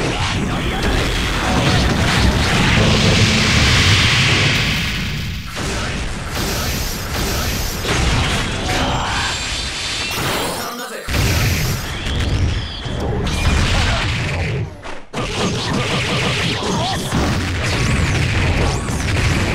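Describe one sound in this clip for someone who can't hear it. Fiery blasts and electric crackles burst out.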